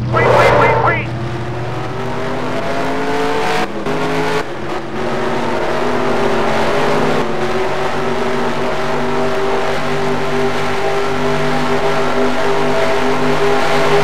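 A V8 stock car engine accelerates hard, shifting up through the gears.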